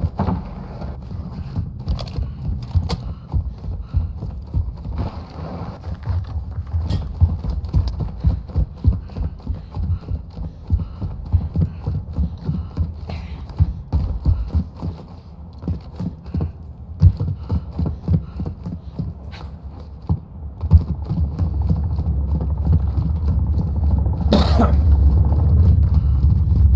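Footsteps thud quickly and steadily.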